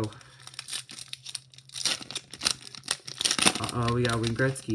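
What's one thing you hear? A foil wrapper crinkles and tears in someone's hands.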